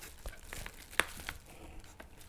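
Plastic handheld devices click and knock together.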